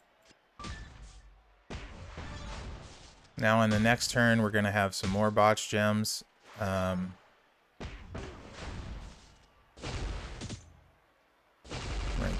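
Video game chimes ring as gems match and burst.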